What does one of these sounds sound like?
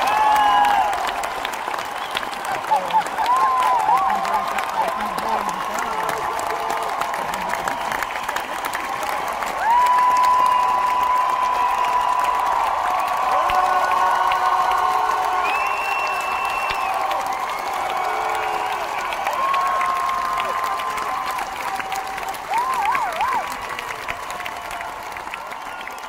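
A large crowd cheers and whistles in a big echoing hall.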